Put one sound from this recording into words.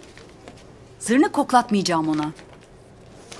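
A woman answers in a low, doubtful voice up close.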